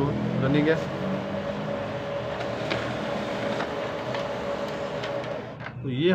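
A printer whirs and clatters as it feeds a sheet of paper.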